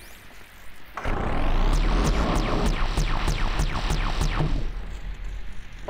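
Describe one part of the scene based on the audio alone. A weapon fires with loud crackling zaps.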